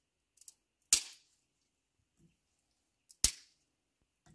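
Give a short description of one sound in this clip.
Dry sticks clatter as they drop into a metal stove.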